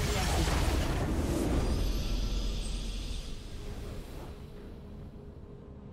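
A triumphant victory fanfare swells and then fades.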